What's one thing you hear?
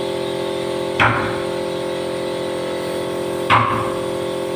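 A man taps on a wooden door frame.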